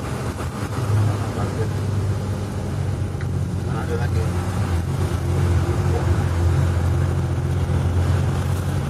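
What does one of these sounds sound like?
A heavy truck engine rumbles low and steadily as the truck drives past.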